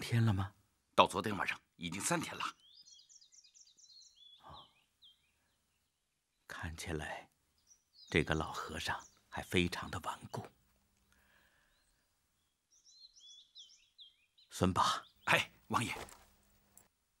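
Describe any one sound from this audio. An older man speaks calmly.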